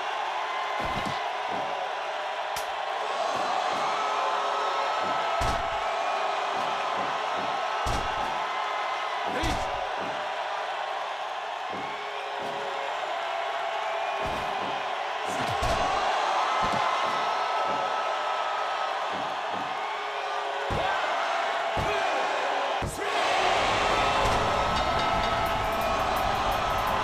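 A crowd cheers steadily throughout.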